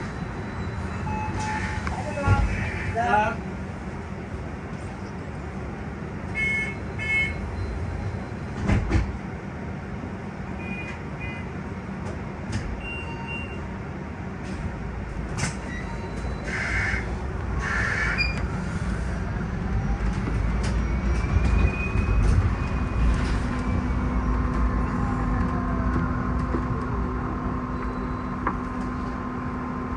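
Tyres roll on the road beneath a moving bus.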